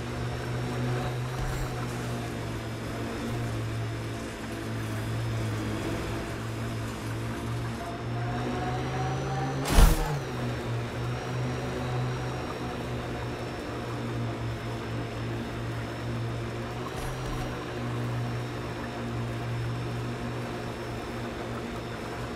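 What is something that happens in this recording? A vehicle's engine hums steadily as it drives over sand.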